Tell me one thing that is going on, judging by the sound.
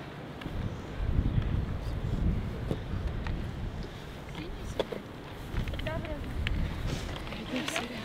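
Wind rumbles across a microphone.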